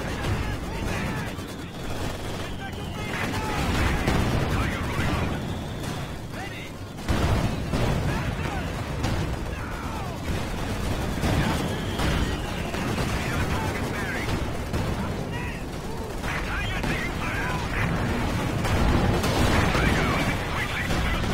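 Gunfire crackles steadily.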